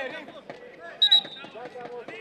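A referee's whistle blows once, short and sharp.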